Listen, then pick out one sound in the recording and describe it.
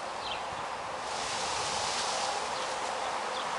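Leaves rustle as a basket is pushed up into a tree's branches.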